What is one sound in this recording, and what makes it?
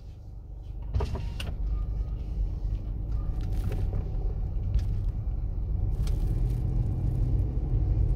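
A car engine hums and the tyres rumble as the car drives off.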